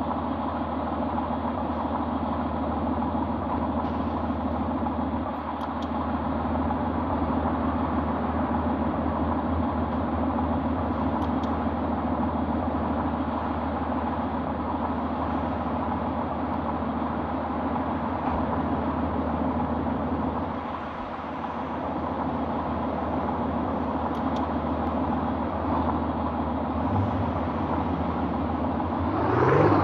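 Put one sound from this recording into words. A car engine hums at low speed.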